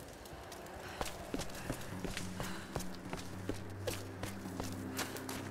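Footsteps climb stone stairs at a steady pace.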